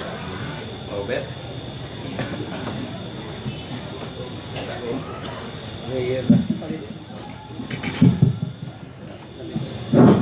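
Men talk quietly nearby in a small gathering.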